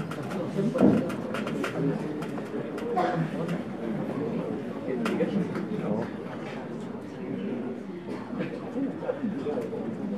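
A crowd of people murmurs and chatters in a large room.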